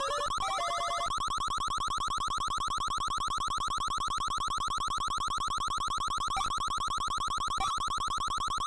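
Fast electronic blips tick steadily as slot reels spin.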